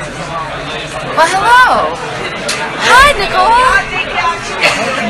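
A crowd talks and shouts excitedly.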